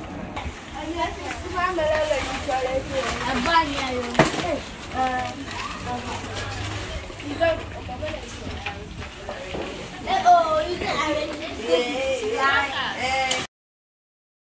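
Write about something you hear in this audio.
Children chatter and call out excitedly close by.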